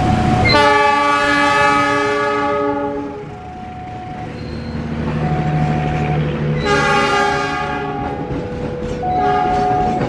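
A passenger train rolls past close by, clattering and rumbling on the rails.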